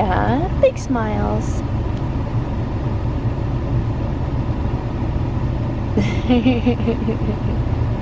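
A newborn baby coos softly close by.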